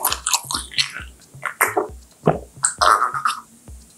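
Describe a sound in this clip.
A young woman gulps down a drink.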